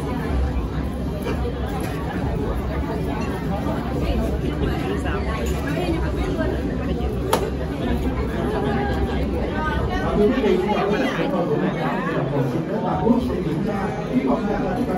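A crowd of young women chatter nearby in a busy, echoing room.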